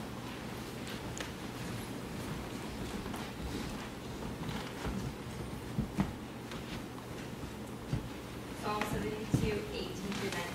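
A man speaks quietly in a room that echoes.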